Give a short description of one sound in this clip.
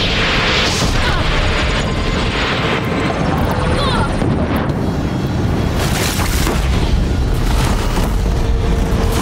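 A giant machine rumbles and stomps heavily.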